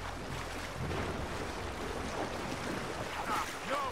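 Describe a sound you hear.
A paddle splashes through the water.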